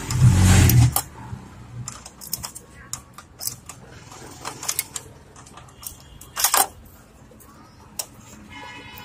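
Small metal parts click and rattle as they are handled.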